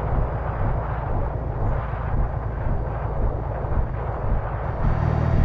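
A bus engine rumbles steadily as a bus drives along a road.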